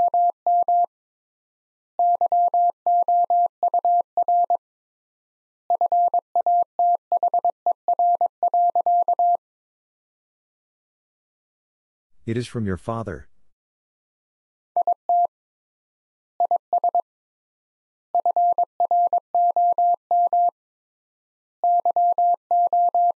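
A Morse code key taps out quick bursts of steady beeping tones.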